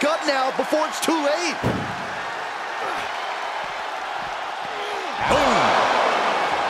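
A large crowd cheers and roars in a big arena, swelling loudly near the end.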